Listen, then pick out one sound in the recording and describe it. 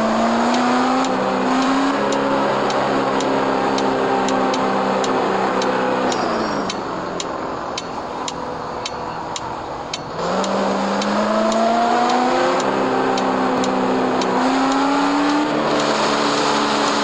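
A car engine hums, dropping in pitch as it slows and rising again as it speeds up.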